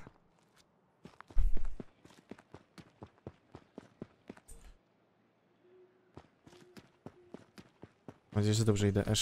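Footsteps run quickly over grass and leaves.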